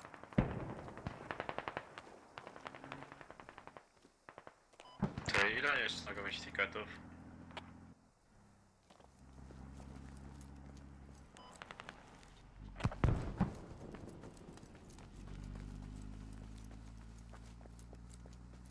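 Footsteps tread steadily over rock and grass.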